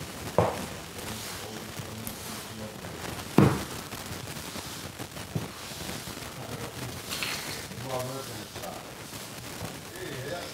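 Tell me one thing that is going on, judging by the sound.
A mop swishes and scrapes across a floor.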